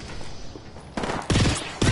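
Gunshots fire in short bursts close by.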